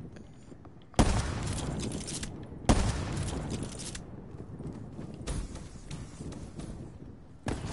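A rifle fires loud single shots that echo briefly.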